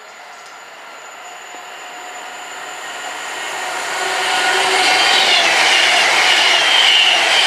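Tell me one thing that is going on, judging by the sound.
A high-speed train approaches and roars past close by, growing louder.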